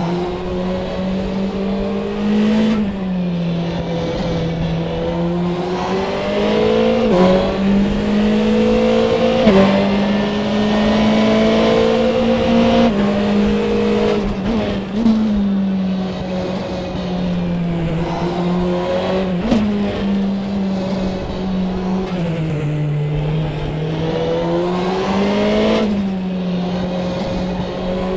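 A racing car engine roars steadily, rising and falling in pitch as the gears shift.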